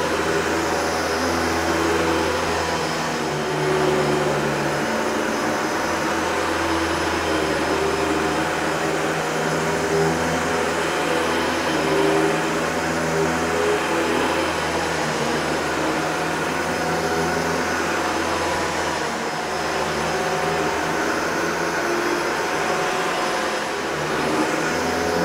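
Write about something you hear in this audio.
A vacuum cleaner motor whirs steadily and loudly.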